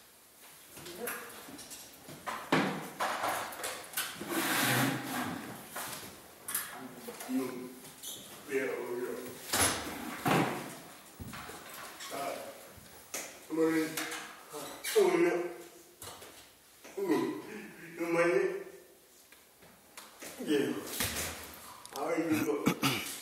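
Men and women talk in a large echoing hall.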